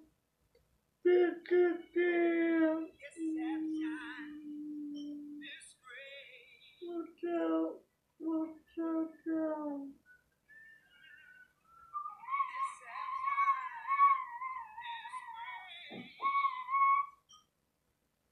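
A woman sings in a clear, high voice.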